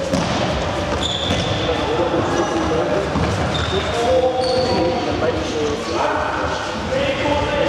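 Young players shout to each other across an echoing hall.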